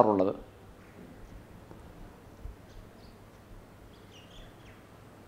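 A middle-aged man speaks calmly and close, through a microphone.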